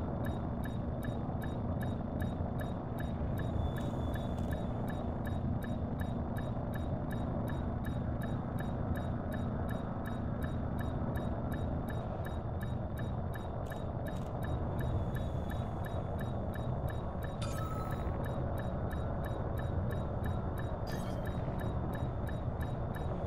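A spaceship engine hums with a low, steady rumble.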